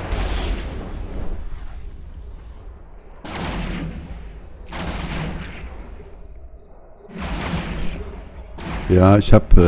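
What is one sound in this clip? Spaceship weapons fire in rumbling, whooshing blasts.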